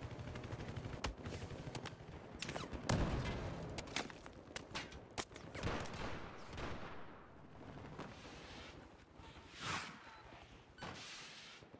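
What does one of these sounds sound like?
Gunshots crack sharply, some close and some distant, with a short echo.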